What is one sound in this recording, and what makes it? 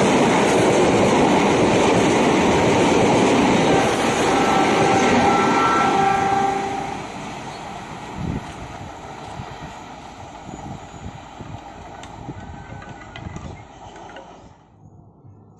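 A train rumbles past close by and fades into the distance.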